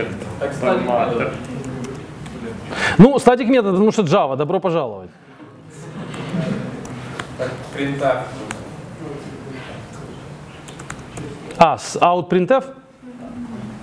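Laptop keys click as a man types.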